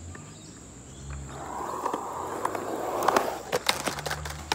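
Skateboard wheels roll and rumble over concrete, coming closer.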